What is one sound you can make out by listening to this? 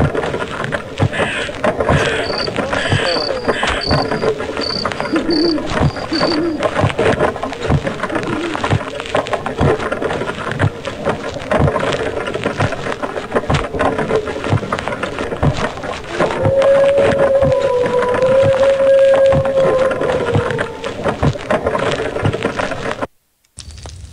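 A wooden cart rattles and clatters steadily as it rolls along.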